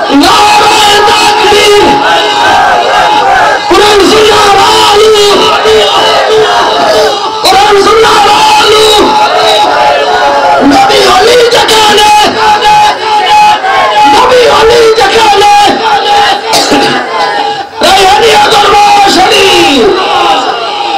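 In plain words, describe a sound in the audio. A man sings loudly into a microphone through loudspeakers, in a melodic chanting style.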